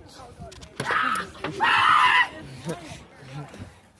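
A man screeches loudly like an animal.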